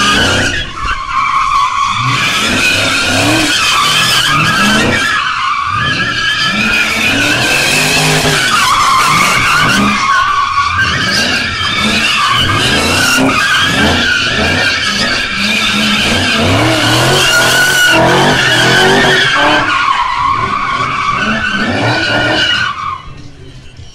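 Tyres screech loudly on the pavement.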